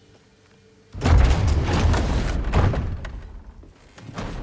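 A heavy wooden door creaks and swings open.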